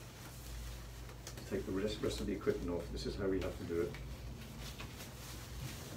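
Rubber gloves rustle and snap as they are pulled on.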